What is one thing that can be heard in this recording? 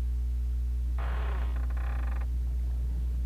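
Heavy wooden doors creak and grind open.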